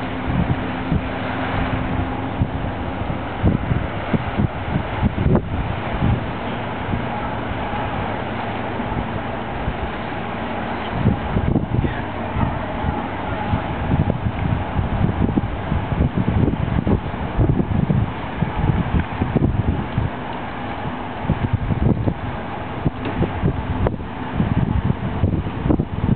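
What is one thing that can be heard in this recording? A boat engine rumbles steadily across the water.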